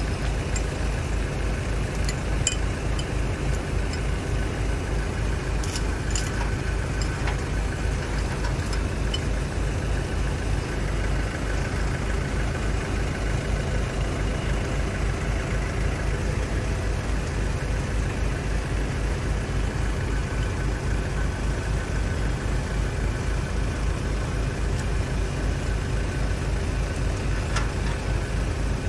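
A car jack clicks and creaks as a man cranks it.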